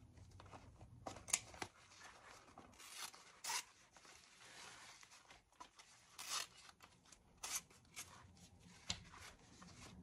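Scissors snip through fabric in short bursts.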